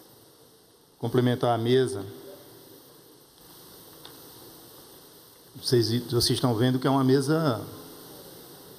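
A man speaks through loudspeakers in a large echoing hall.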